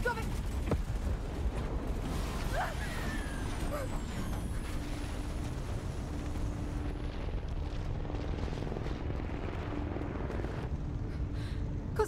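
An explosion roars with a deep rumble.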